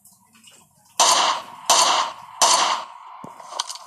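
A rifle fires single loud shots, a few in a row.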